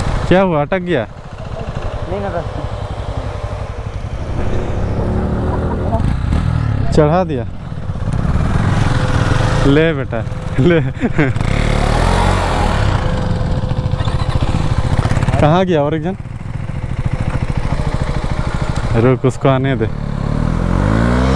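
Tall grass swishes against a moving motorcycle.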